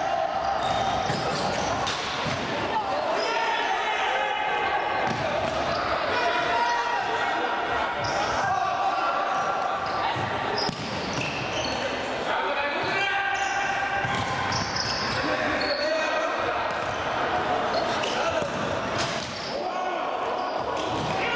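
Sneakers squeak on a hard floor in an echoing hall.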